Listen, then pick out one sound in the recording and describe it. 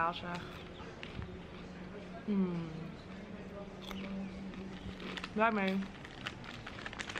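A snack bag crinkles and rustles.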